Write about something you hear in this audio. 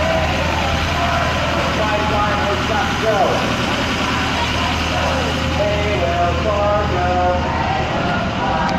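A siren wails close by.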